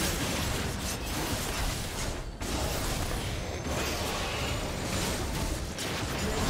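Fantasy battle sound effects crackle and whoosh as spells are cast.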